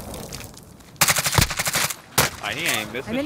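A rifle fires loud, sharp shots.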